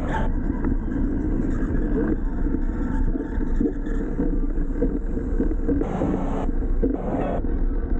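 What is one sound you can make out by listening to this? Wind buffets loudly against a microphone.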